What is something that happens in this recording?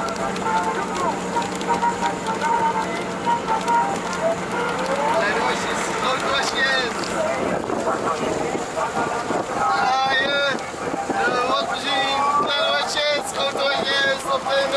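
A car drives along a wet road with a steady hum.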